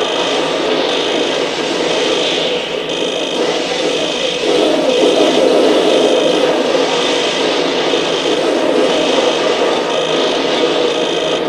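Harsh electronic static hisses and crackles steadily.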